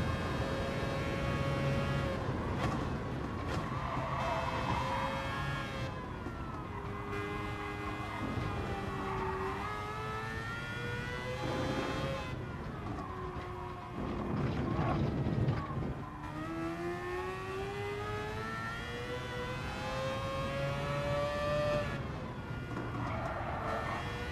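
A racing car engine revs high and drops as gears shift.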